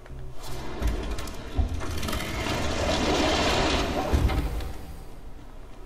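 Hands scrape and push against a wooden door.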